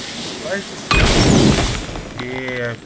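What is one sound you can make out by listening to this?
A fiery burst crackles and flares with a loud whoosh.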